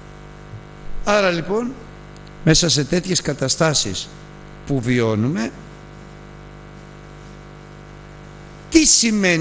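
An elderly man speaks with emphasis into a microphone, in bursts with pauses.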